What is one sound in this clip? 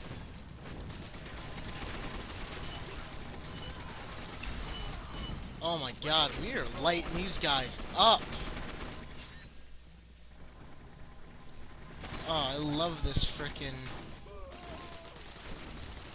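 Rifle shots crack now and then.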